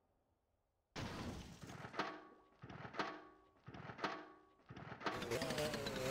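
A small motorbike engine is kick-started, sputtering a few times before catching.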